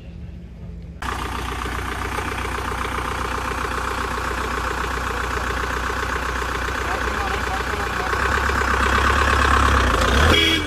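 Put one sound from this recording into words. An off-road vehicle engine idles with a low rumble.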